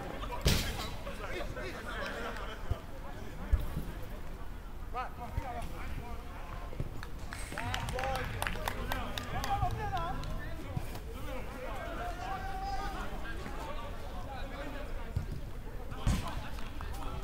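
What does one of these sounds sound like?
A football is struck with sharp thuds.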